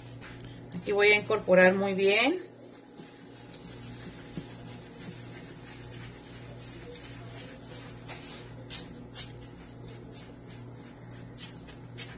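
A spoon stirs liquid, scraping and tapping softly against a plastic jug.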